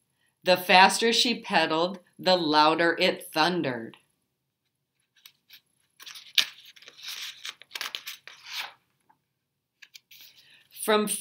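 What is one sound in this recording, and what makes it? A middle-aged woman reads aloud clearly and expressively, close by.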